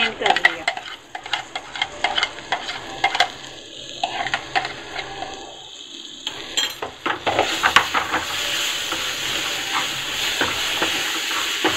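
A metal spatula scrapes and taps against a pan.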